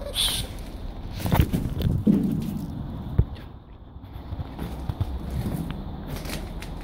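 Boots crunch through snow, one step after another.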